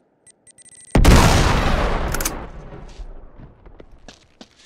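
A grenade explodes with a loud, rumbling blast.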